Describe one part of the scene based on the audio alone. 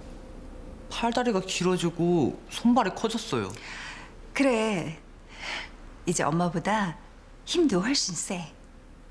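A woman speaks warmly and close by.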